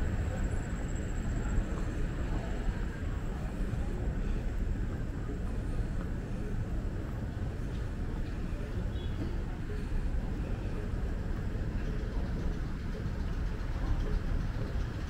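A moving walkway hums and rumbles steadily.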